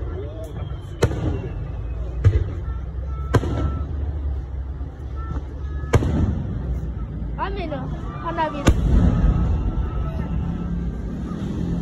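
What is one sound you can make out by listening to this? Fireworks boom and crackle outdoors.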